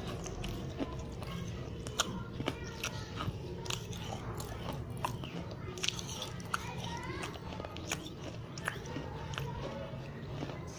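Lips make wet smacking and kissing sounds very close to a microphone.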